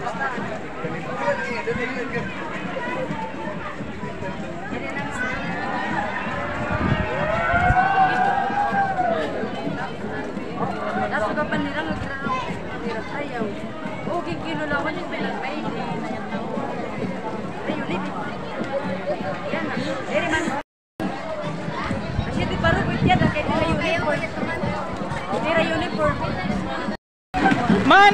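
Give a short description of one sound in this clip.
A crowd of men and women chatter as they walk along outdoors.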